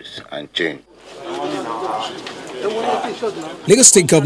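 A crowd of people talk over each other nearby.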